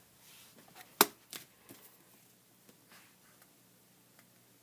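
Stiff book pages rustle as they are turned.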